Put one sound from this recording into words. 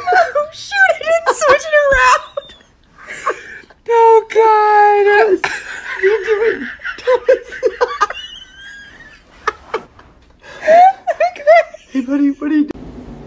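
A woman laughs loudly and shrieks.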